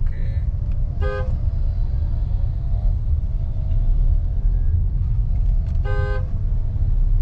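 A vehicle horn honks briefly, twice.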